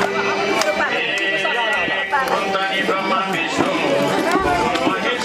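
A group of men and women sing together nearby.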